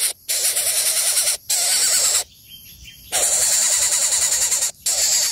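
A nestling bird begs with loud, rapid, shrill cheeping calls close by.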